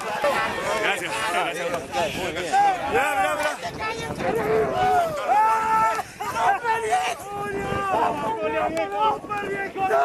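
Men shout and cheer excitedly close by.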